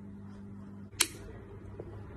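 A lighter clicks once, sharply.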